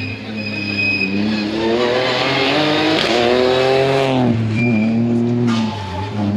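A rally car engine revs hard as the car races up close and past, then fades.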